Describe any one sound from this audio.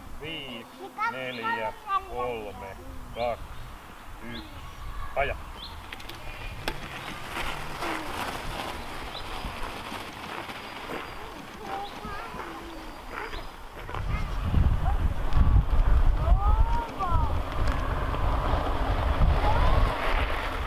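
Bicycle tyres roll over gravel.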